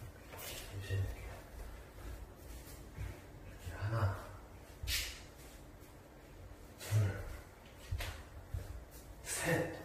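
Footsteps tread across a wooden floor.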